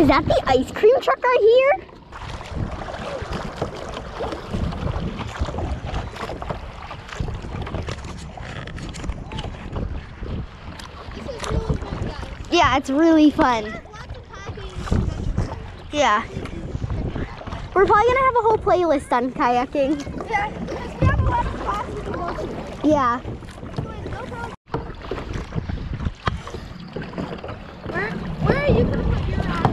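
Wind blows across open water outdoors.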